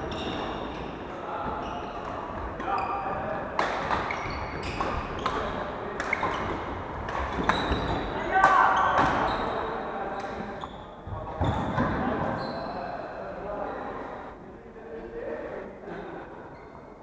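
Players call out and talk loudly across the hall.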